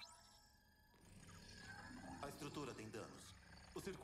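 An energy beam hums and crackles.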